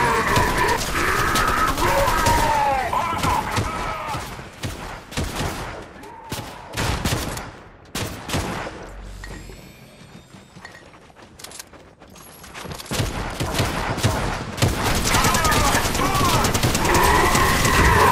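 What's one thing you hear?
Rapid gunshots fire at close range.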